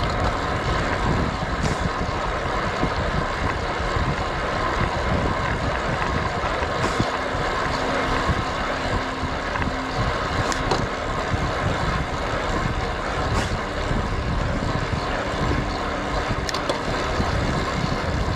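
Road bike tyres hum on asphalt.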